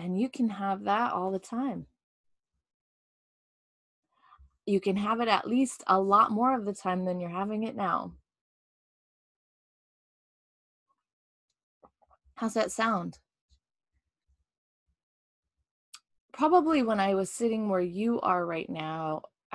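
A woman talks calmly and closely into a microphone, with pauses.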